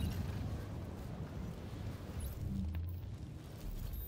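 A fire crackles in a metal barrel.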